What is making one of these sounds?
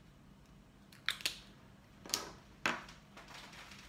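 Small plastic items click and knock in a woman's hands.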